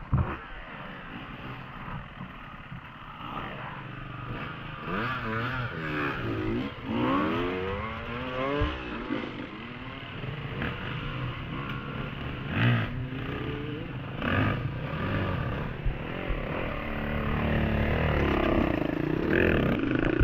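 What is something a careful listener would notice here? Dirt bike engines rev and whine.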